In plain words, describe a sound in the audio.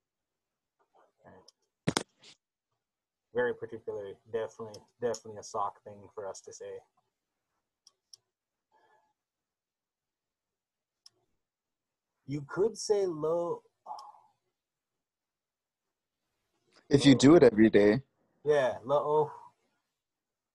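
A man speaks calmly, heard through an online call, pausing between phrases.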